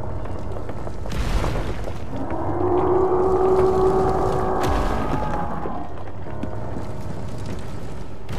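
Flames crackle and rumble.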